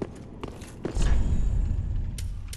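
A heavy iron gate grinds open.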